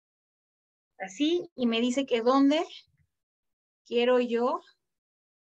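A young woman speaks with animation through an online call microphone.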